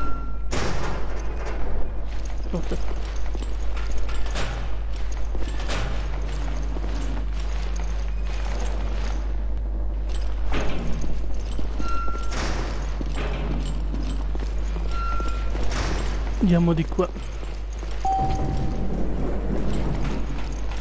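Footsteps tread on a hard metal floor.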